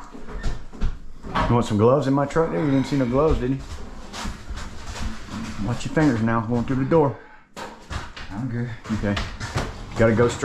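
A metal stove scrapes and bumps across a floor.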